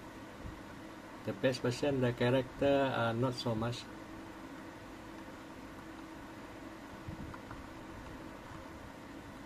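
Thumbs click buttons on a handheld game controller.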